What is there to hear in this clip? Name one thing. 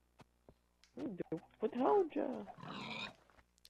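A pig grunts and squeals close by.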